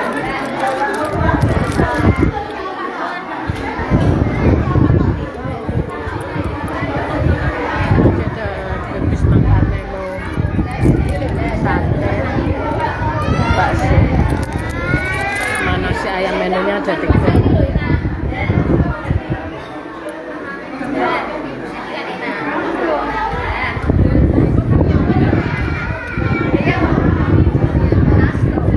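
A crowd of men, women and children chatter loudly all around.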